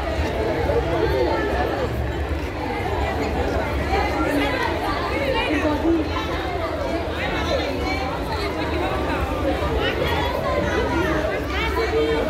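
A crowd of men and women chatter and call out nearby, outdoors.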